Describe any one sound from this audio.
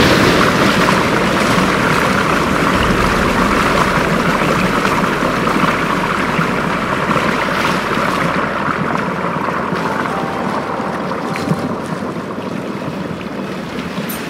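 Water rushes and churns loudly nearby, slowly growing quieter.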